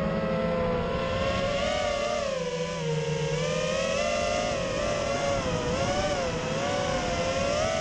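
A small drone's motors whine up close, rising and falling in pitch.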